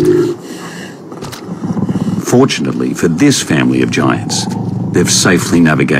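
Heavy footsteps crunch on dry ground.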